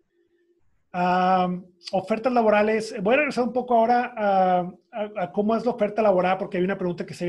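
A middle-aged man speaks with animation, close to the microphone.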